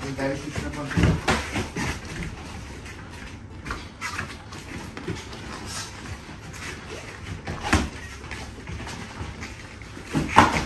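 Gloved punches and kicks thud against pads.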